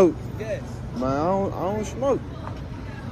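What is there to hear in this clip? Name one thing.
A man answers briefly from inside a van.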